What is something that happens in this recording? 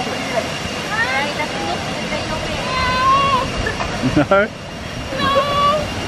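A young woman talks and laughs close by, outdoors.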